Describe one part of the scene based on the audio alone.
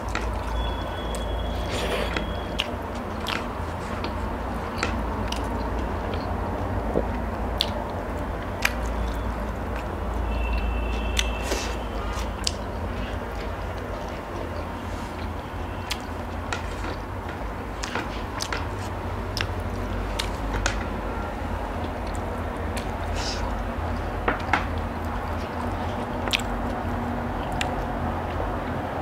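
Fingers squish and tap through rice on a plate.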